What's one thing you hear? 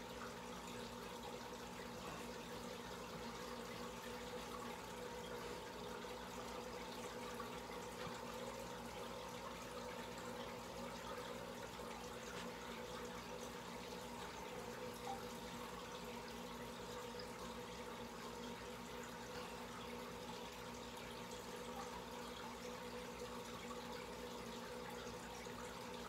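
Air bubbles stream and fizz up through aquarium water.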